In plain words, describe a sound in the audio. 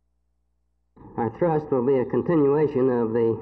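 A middle-aged man speaks calmly and closely into a handheld microphone.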